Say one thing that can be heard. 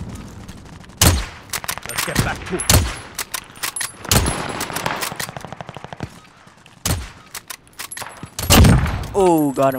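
A sniper rifle fires loud, sharp single shots.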